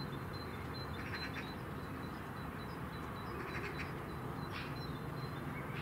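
A bird chirps in short bursts nearby.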